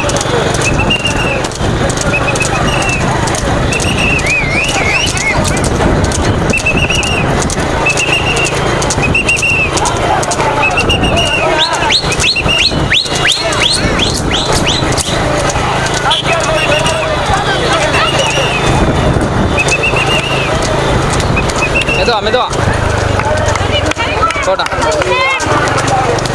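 Cart wheels rattle over a paved road.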